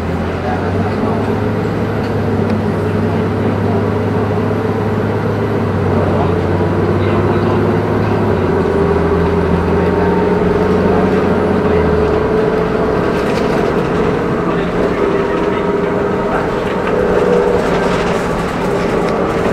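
The bus interior rattles and creaks as it moves.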